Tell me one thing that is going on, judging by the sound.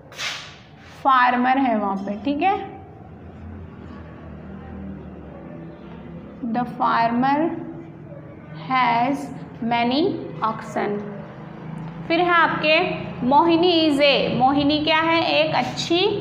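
A young woman speaks clearly and slowly, as if teaching, close by.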